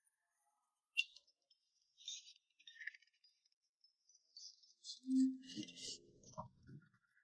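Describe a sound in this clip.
A young woman chews and slurps food noisily up close.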